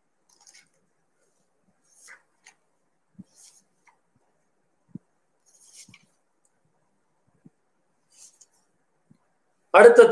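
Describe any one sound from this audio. Book pages rustle softly as they are turned.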